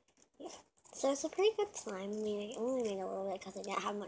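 A young girl speaks close by in a high, drawn-out voice.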